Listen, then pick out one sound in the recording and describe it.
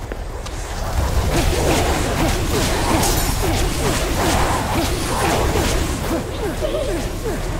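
Magic energy blasts whoosh and crackle in quick bursts.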